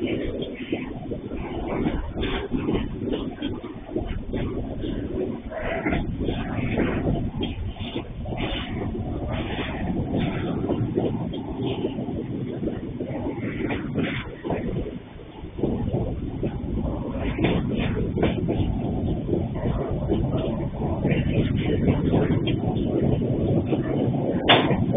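A long freight train rumbles and clatters along the tracks nearby.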